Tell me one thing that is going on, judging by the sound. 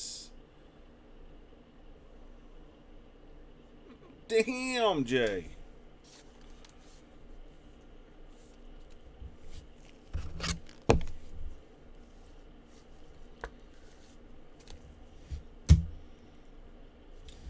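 Plastic rustles and clicks as a card holder is handled.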